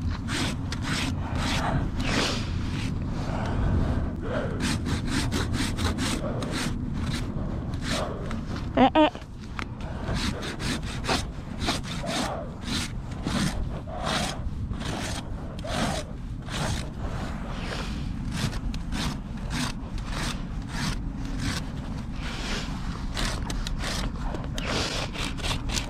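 A rasp files a hoof with rhythmic scraping strokes.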